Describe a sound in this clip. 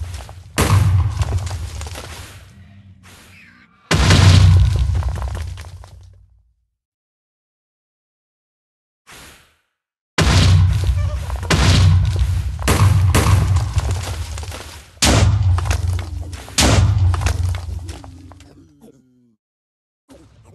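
Loud explosions boom and rumble again and again, each one slowly fading.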